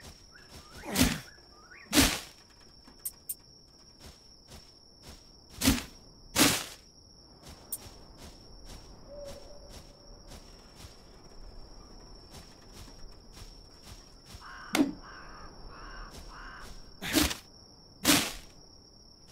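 Blows chop into leafy bushes.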